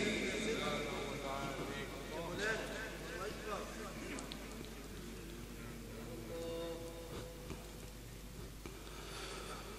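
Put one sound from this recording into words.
An elderly man recites in a melodious chanting voice through a microphone, in an echoing hall.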